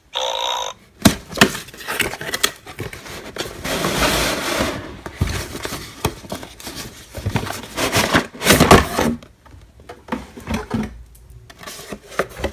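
A cardboard box scrapes and rustles as it is slid open.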